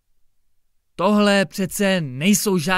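A young man reads aloud calmly and clearly, close to a microphone.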